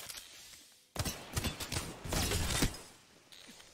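A shield powers up with a loud electric surge.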